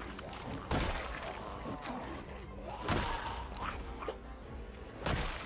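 Heavy blows thud and crunch repeatedly.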